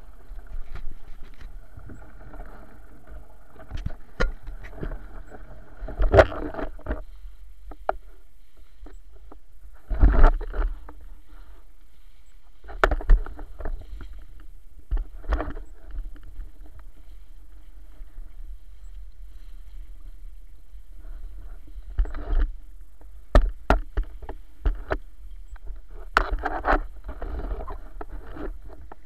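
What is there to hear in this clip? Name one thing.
Water splashes against a small boat's hull.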